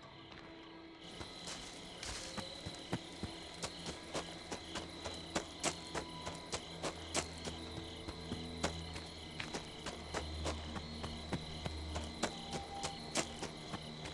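Quick footsteps run over soft ground outdoors.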